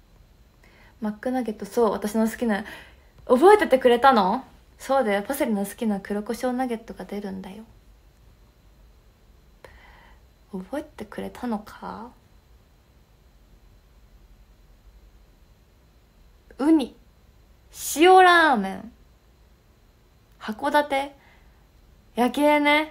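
A young woman talks calmly and warmly into a nearby microphone, in bursts with pauses.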